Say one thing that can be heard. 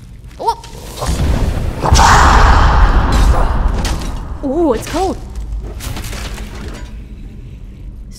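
Flames whoosh and roar.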